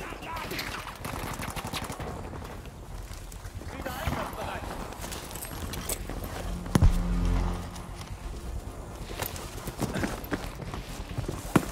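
Footsteps thud quickly on soft ground.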